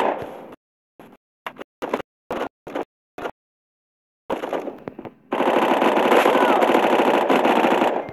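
Gunfire from a game rifle rattles in short bursts.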